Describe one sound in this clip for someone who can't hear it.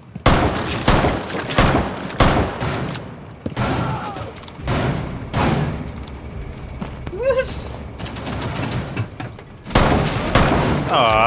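Quick footsteps thud and scuff on hard ground.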